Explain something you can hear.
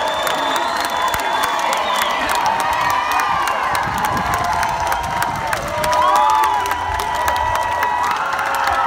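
A large crowd cheers and whistles.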